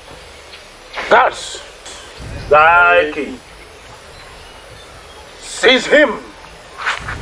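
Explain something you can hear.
Men call out loudly in short, sung bursts.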